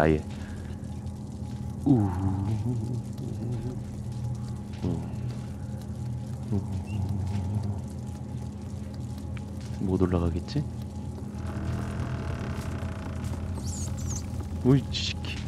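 A young man talks casually, close to a microphone.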